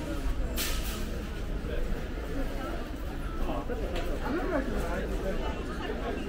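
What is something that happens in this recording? Shopping cart wheels rattle over concrete.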